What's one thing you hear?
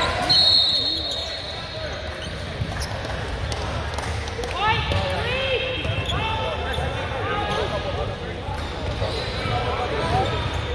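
Spectators chatter in a large echoing hall.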